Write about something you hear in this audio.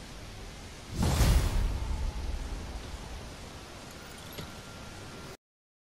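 Wind rushes and gusts high above a city.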